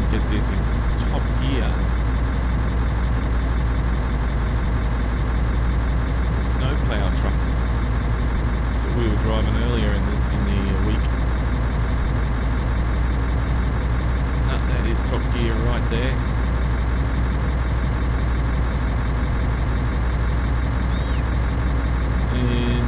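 A truck engine drones steadily at low pitch.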